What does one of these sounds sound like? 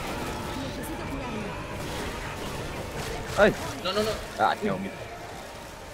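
Zombies snarl and shriek nearby.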